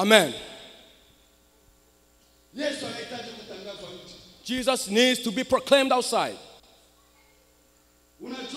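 A man speaks loudly and with animation through a microphone in a large echoing hall.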